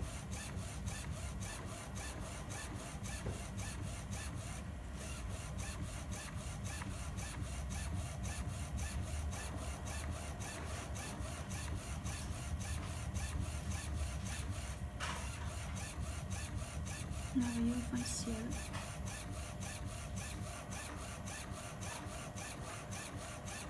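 A printer's motor hums steadily.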